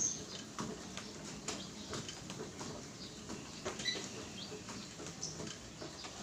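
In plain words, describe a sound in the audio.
Footsteps pound rhythmically on a treadmill.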